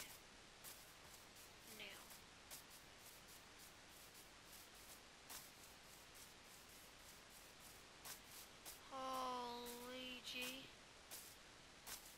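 Footsteps tread steadily on grass.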